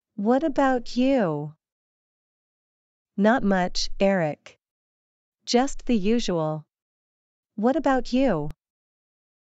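A woman speaks clearly in short phrases, as if reading out.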